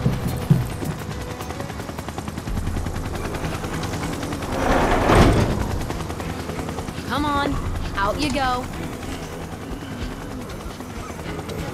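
A helicopter engine hums steadily.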